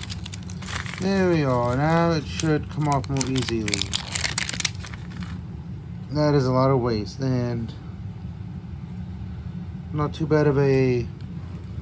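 Plastic crinkles and rustles as it is squeezed in the hands.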